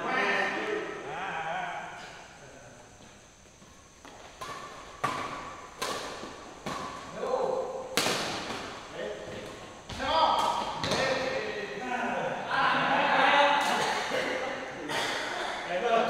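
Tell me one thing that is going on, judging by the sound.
Young men call out and talk in an echoing hall.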